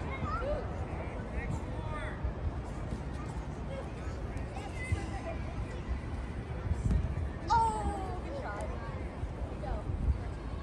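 Footballs thud as children kick them.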